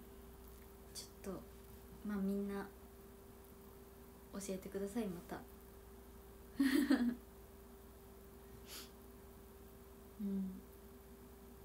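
A young woman speaks softly and playfully into a close microphone.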